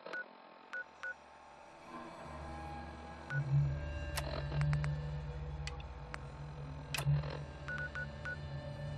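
Short electronic beeps click as menu pages change.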